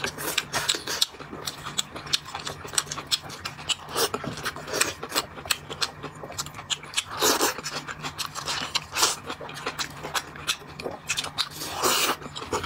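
A man chews and slurps food loudly up close.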